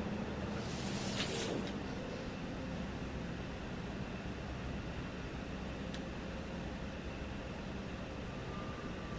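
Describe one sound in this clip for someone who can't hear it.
A spacecraft's engine hums low and steady.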